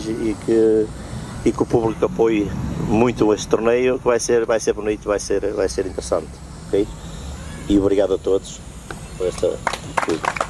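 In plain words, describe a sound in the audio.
A man speaks calmly into a microphone over loudspeakers outdoors.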